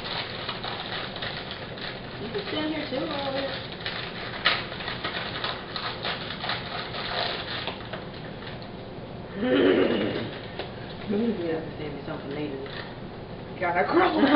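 A packet of crackers crinkles and rustles.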